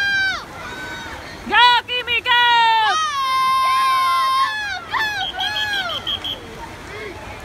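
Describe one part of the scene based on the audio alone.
A crowd of spectators cheers and screams loudly outdoors.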